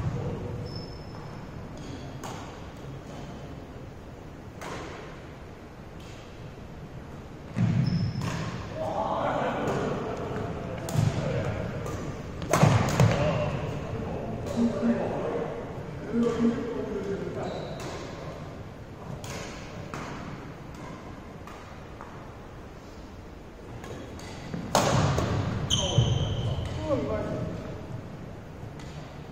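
Rackets smack shuttlecocks in a large echoing hall.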